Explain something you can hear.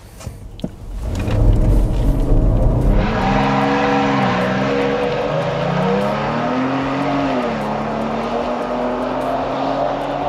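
A car engine roars and revs hard.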